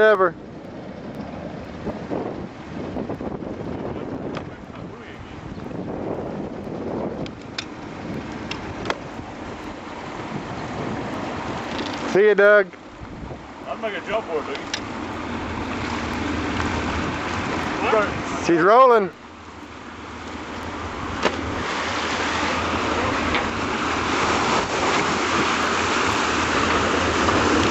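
Small waves lap against a wooden hull.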